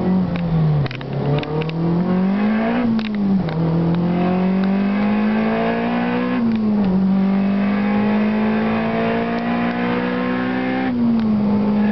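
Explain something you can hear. A turbocharged four-cylinder engine pulls hard at full throttle, heard from inside the cabin, climbing through the gears with quick shifts.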